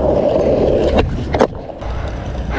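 A skateboard tail snaps and the board clacks down on the ground.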